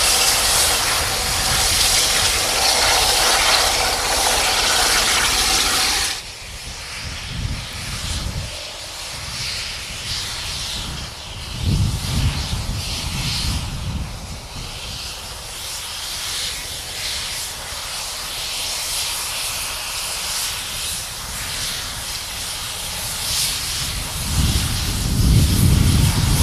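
A steam locomotive chugs steadily and draws slowly closer.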